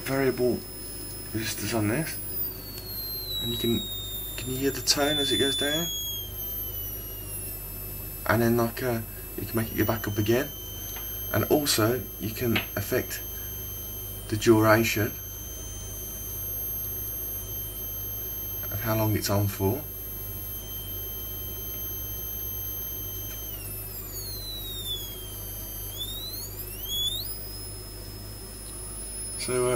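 A high electronic tone whines from a small speaker and shifts in pitch.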